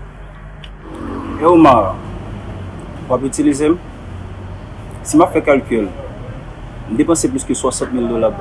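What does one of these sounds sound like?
A young man speaks calmly up close, in short phrases.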